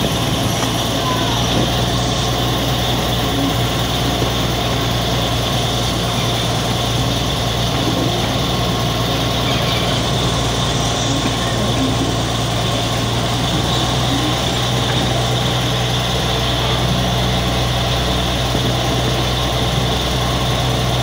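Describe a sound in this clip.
Train wheels rattle along the track.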